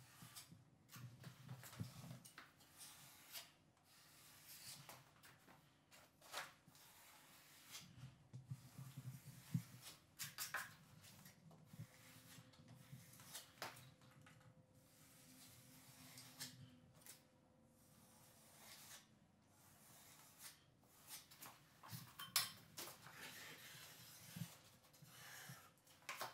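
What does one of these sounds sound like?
A putty knife scrapes joint compound onto drywall.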